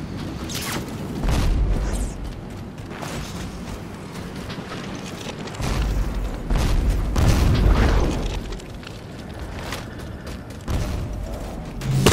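A heavy gun fires loud booming shots.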